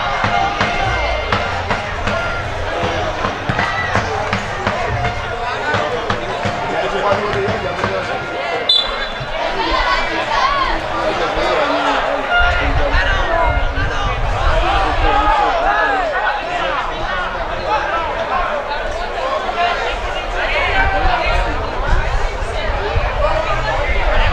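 Young players shout to each other across the pitch.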